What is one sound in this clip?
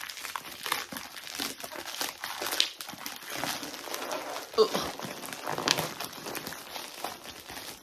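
Plastic packaging tears open with a sharp rip.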